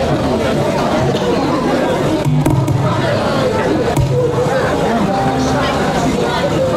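An acoustic guitar is strummed through loudspeakers.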